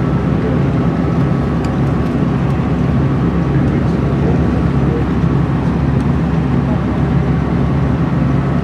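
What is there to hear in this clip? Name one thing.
A bus engine hums low and steady from inside.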